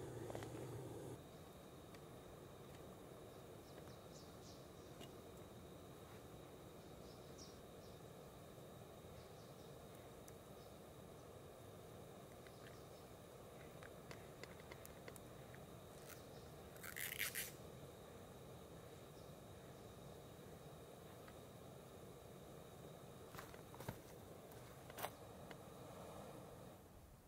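A gas stove burner hisses steadily.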